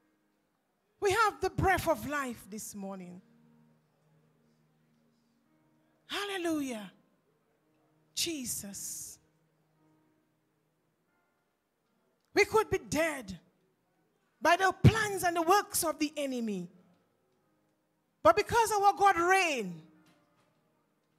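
A woman sings short phrases through a microphone, with pauses between them.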